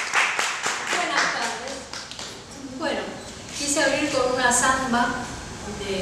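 A woman speaks warmly and cheerfully nearby.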